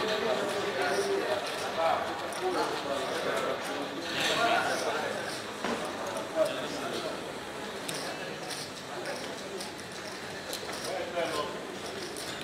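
Casino chips click and clatter as they are placed on a table.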